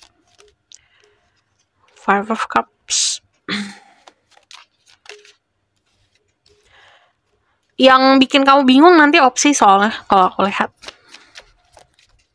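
Playing cards slide and tap onto a table.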